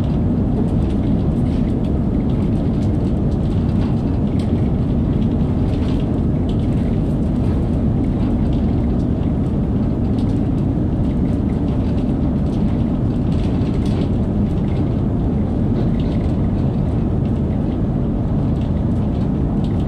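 A train rumbles steadily through a tunnel at speed.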